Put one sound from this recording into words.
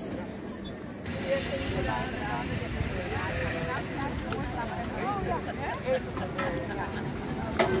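A small steam engine hisses softly.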